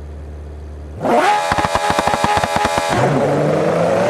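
A supercar engine revs hard at the start line.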